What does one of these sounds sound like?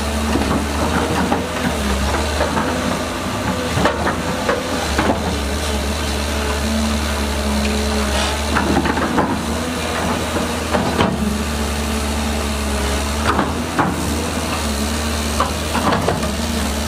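A diesel excavator engine rumbles steadily and revs.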